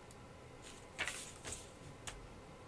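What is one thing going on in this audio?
Paper rustles as it is moved across a table.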